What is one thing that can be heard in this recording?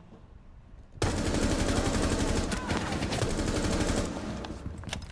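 An automatic rifle fires in rapid bursts.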